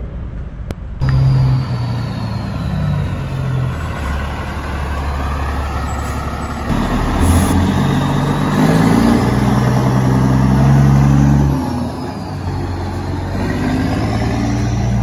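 A large truck engine rumbles deeply as the truck drives past.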